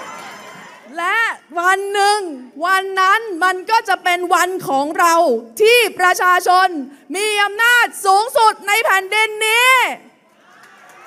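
A young woman sings through a microphone, her voice rising and falling.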